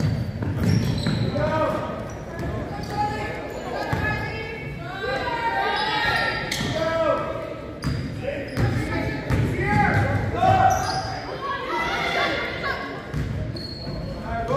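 Young women shout and call out to each other across the court.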